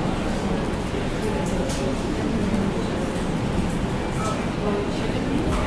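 Keys clatter on a laptop keyboard.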